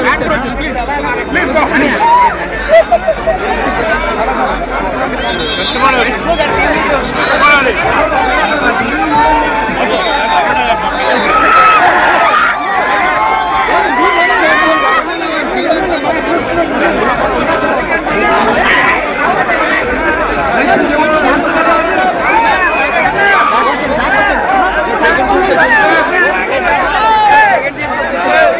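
A large crowd of men and women shouts and cheers close by.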